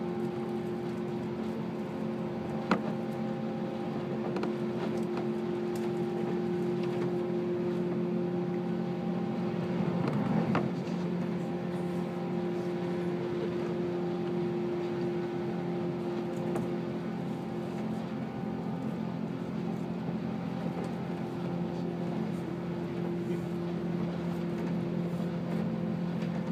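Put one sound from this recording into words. A train hums steadily as it rolls along the tracks.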